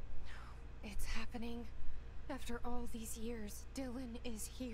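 A woman speaks quietly and calmly, close by.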